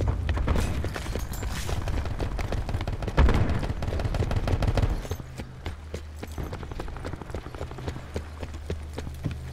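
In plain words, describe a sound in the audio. Footsteps run quickly over hard stone.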